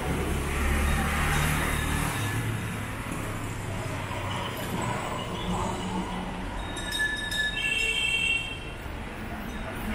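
Scooters hum past along the street.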